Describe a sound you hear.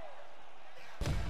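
Punches thud dully against a body.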